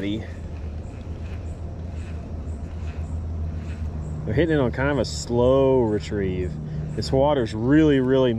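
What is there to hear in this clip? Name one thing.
A fishing reel whirs softly as its handle is turned.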